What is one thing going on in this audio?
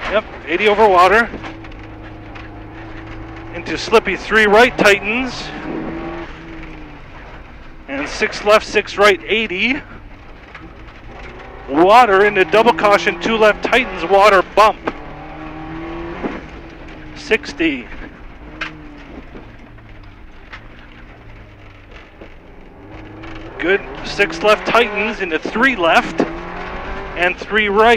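A car engine roars and revs hard, rising and falling in bursts.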